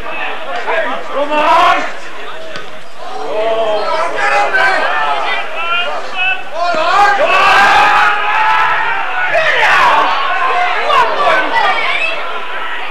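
Male spectators shout and call out from the stands at a rugby match outdoors.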